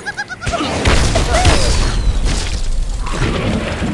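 Blocks crash and clatter as a structure collapses.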